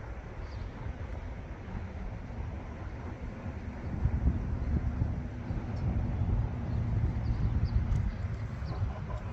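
Wind rumbles across the microphone outdoors, growing stronger midway.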